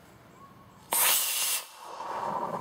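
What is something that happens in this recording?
A launcher fires with a sharp bang.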